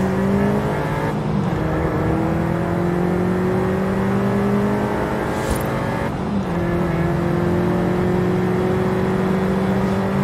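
A car engine roars and climbs in pitch as it speeds up, dipping briefly at each gear change.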